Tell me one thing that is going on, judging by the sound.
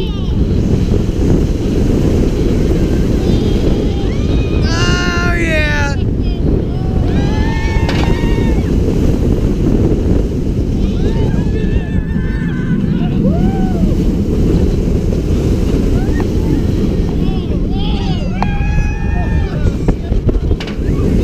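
Wind roars loudly past the microphone throughout.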